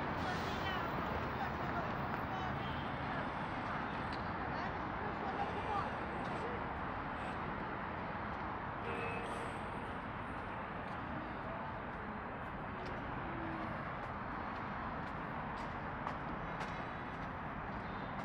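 Traffic hums steadily along a nearby city street outdoors.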